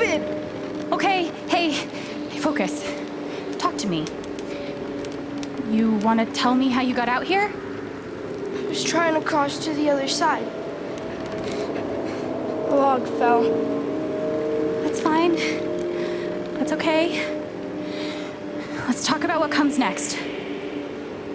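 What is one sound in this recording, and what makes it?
A young woman speaks calmly and gently.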